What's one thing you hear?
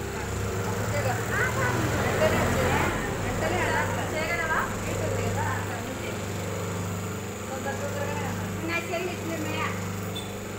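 Several women chatter with animation close by.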